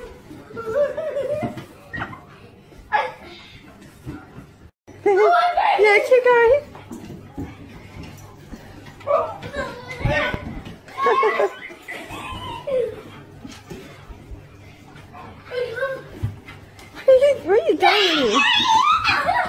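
A young child shrieks and laughs excitedly close by.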